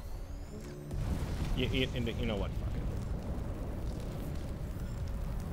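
A heavy metal door slides open with a deep rumble.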